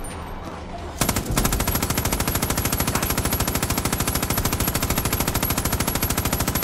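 An automatic gun fires in a rapid, steady stream.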